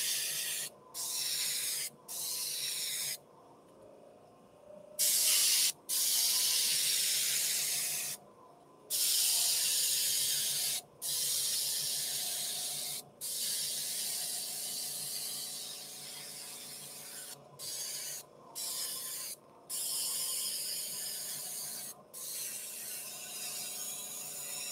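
An airbrush hisses in short bursts of spray.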